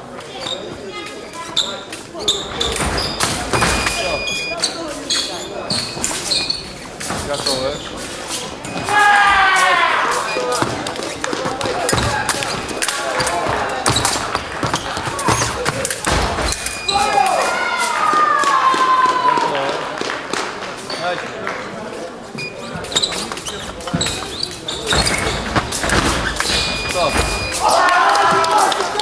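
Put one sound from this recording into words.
Footsteps stamp and squeak on the floor.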